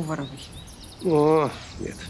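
A young woman answers softly, close by.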